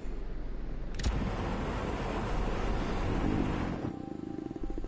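A flamethrower roars with a steady whoosh.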